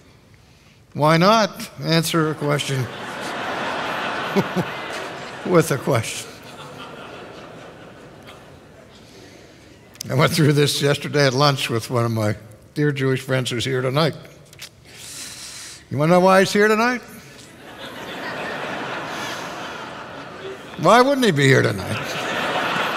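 An older man speaks with animation through a microphone in a large hall.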